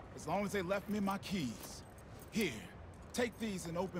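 A young man answers briefly.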